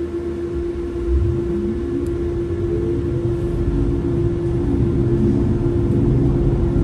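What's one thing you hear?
A bus engine revs up as the bus pulls away.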